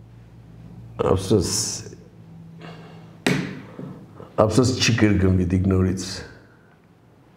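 An elderly man speaks with animation close to a microphone.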